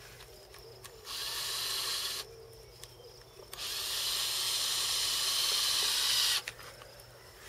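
A cordless drill whirs loudly in short bursts, driving screws.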